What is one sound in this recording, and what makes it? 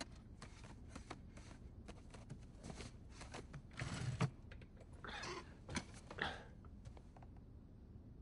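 Paper folders rustle and flap as they are flipped through quickly.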